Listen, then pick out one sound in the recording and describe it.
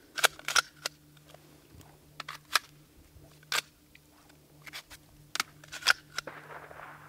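A rifle fires single shots.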